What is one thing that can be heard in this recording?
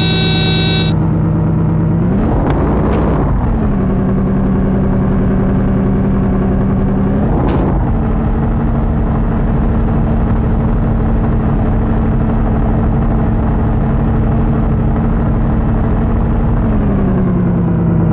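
A car engine hums steadily, rising in pitch as it shifts gears.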